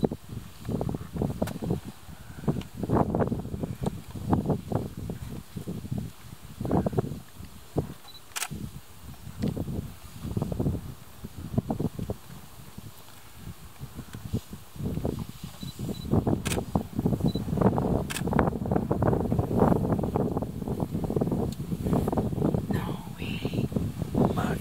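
An elephant's heavy steps rustle through dry grass.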